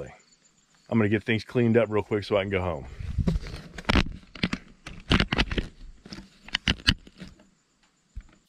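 A middle-aged man talks calmly, close by and outdoors.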